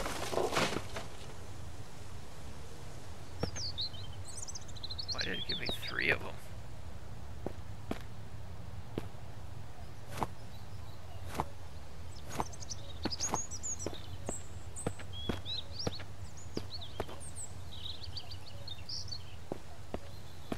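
Footsteps tread slowly over dry ground and pavement.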